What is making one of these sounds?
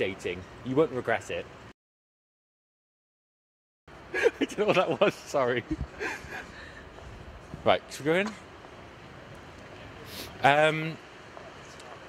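A young man speaks into a microphone outdoors, pausing between phrases.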